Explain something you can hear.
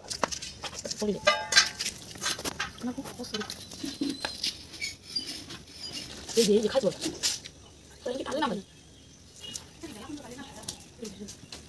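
A boy speaks nearby.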